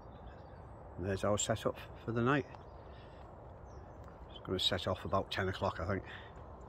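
An elderly man talks calmly close to the microphone.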